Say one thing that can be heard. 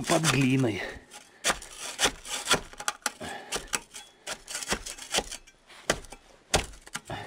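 A hand trowel scrapes and digs into dry soil and debris.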